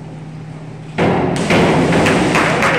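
A diver splashes into the water.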